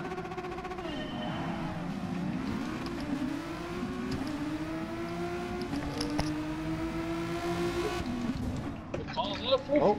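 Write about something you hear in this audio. Several other racing cars whine nearby.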